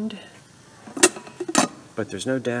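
A metal lid clinks against a ceramic pot.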